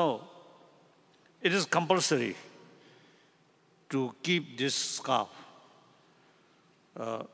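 An elderly man speaks into a microphone in short bursts, heard through a loudspeaker in a reverberant hall.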